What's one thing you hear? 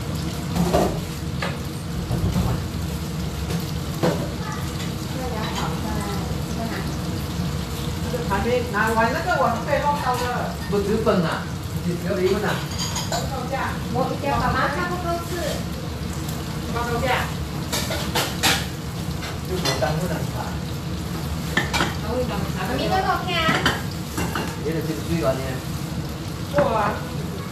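Oil sizzles and bubbles steadily in a frying pan.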